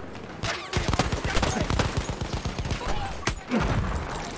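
A revolver fires sharp shots.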